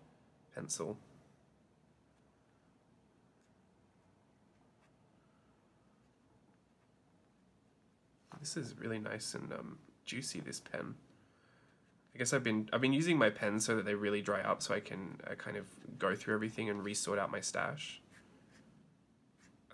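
A felt-tip marker scratches softly on paper.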